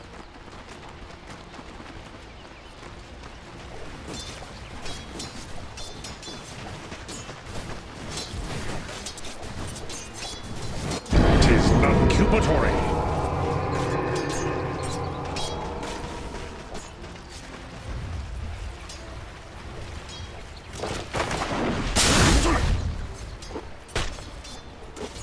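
Fantasy battle sounds clash, with spells and weapon hits.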